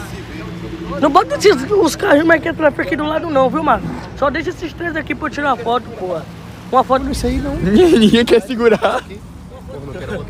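Young men talk with animation nearby.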